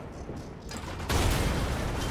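A heavy gun fires with a loud blast.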